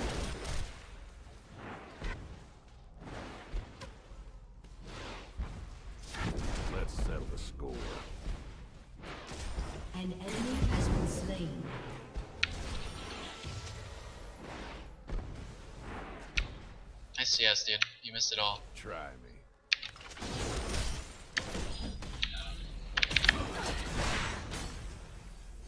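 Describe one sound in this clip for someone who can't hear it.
Game sound effects of spells and hits clash and zap.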